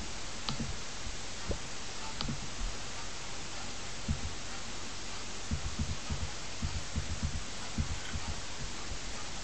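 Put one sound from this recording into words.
A young man talks quietly close to a microphone.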